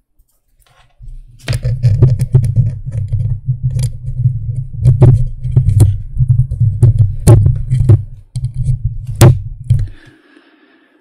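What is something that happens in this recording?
Hands rub and knock against a microphone with deep rumbling thumps.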